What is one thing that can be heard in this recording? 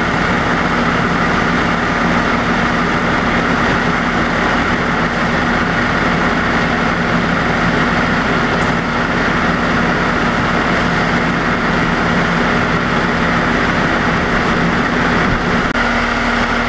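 A fire engine idles with a steady low rumble.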